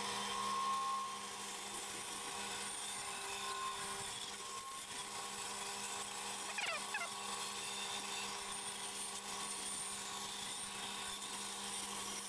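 A band saw blade cuts through wood.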